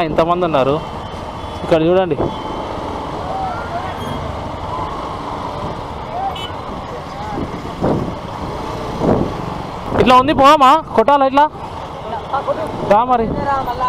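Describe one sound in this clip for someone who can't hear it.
Vehicle horns honk repeatedly.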